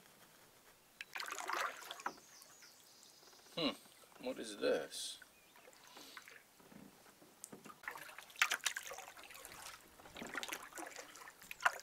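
A paddle dips and splashes softly in calm water.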